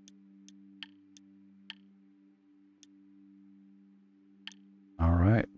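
Interface clicks tick sharply a few times.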